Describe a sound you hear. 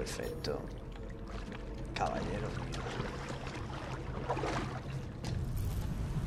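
A swimmer splashes through water.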